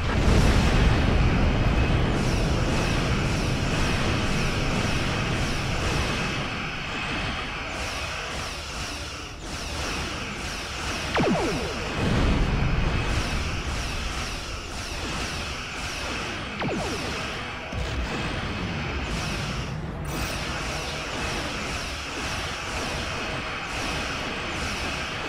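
Laser weapons fire and rumble in a space battle.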